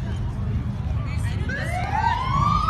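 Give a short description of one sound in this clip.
A siren wails nearby, rising in pitch.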